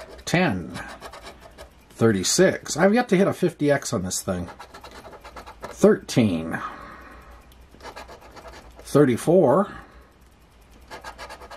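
A coin scrapes across a scratch card.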